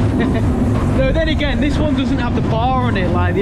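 A man laughs close by.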